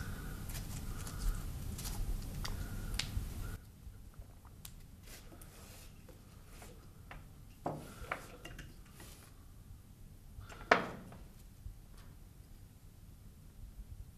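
Cord and plastic parts click and rustle as hands tie a line.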